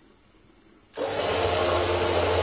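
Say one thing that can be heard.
A blender whirs loudly.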